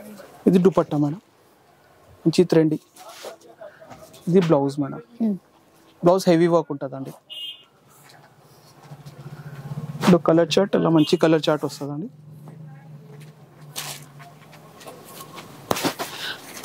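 Fabric rustles as it is unfolded and spread out.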